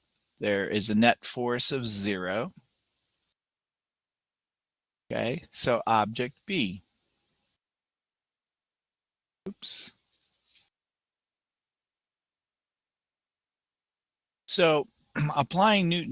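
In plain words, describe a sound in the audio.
A middle-aged man speaks calmly into a close headset microphone, in short bursts with pauses.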